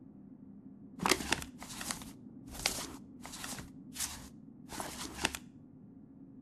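A book's pages rustle and flip.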